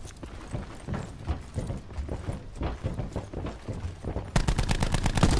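Footsteps clang up metal stairs.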